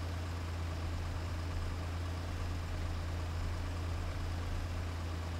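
A diesel truck engine drones while cruising.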